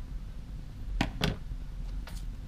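Scissors are set down on a table with a knock.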